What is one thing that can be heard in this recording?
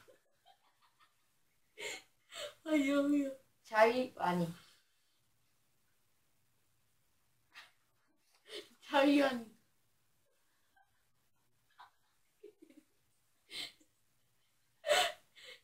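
A second young boy laughs close by.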